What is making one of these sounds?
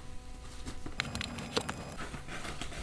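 Paper rustles as a gift bag is handled.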